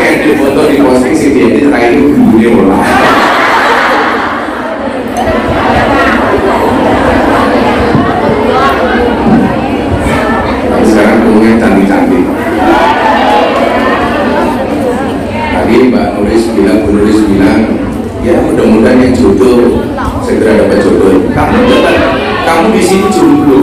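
A man speaks with animation through a microphone over loudspeakers.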